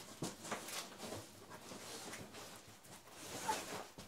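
A cardboard box bumps and scrapes on the floor.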